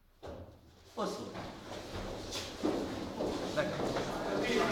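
Children's feet shuffle and step across a wooden floor.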